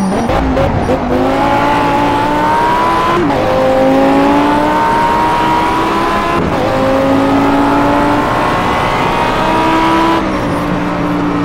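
A sports car engine roars loudly, its pitch climbing steadily and dropping sharply with each gear change.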